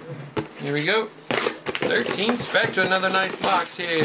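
A cardboard box slides across a table.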